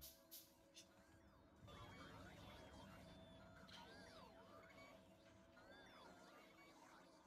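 Machines hum and whir steadily.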